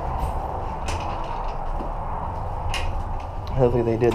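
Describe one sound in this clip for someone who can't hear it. A glass door opens.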